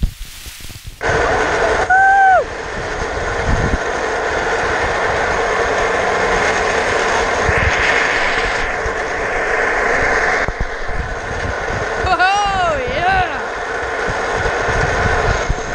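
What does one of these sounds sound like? Small wheels roll and rumble over rough pavement.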